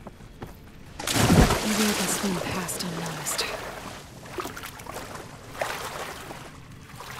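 Water splashes loudly as someone plunges in and swims.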